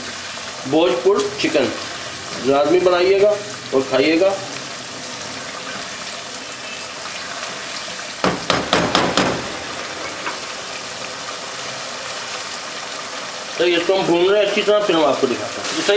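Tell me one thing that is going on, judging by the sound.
A sauce bubbles and simmers in a pot.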